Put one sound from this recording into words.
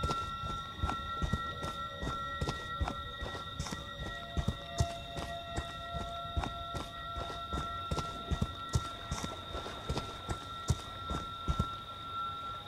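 Heavy footsteps thud quickly on a dirt path.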